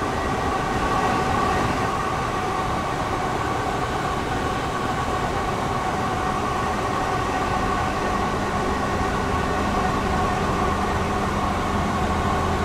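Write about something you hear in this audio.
A train engine hums steadily as the train runs along the track.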